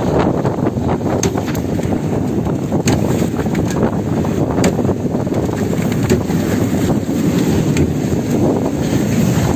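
Wind blows hard across open water.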